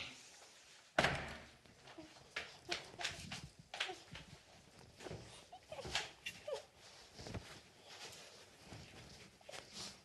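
Bedding rustles as a woman climbs into bed.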